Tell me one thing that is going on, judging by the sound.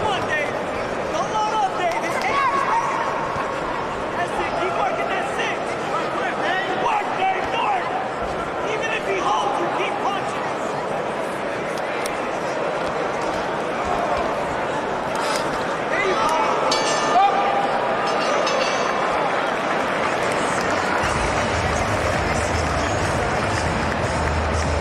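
A crowd murmurs and cheers throughout, echoing in a large hall.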